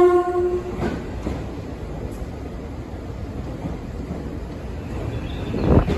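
A train pulls into the station with a rising roar.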